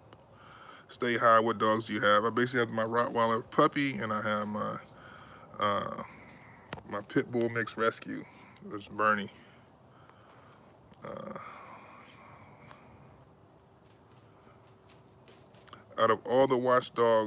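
A middle-aged man talks with animation close to the microphone, with pauses.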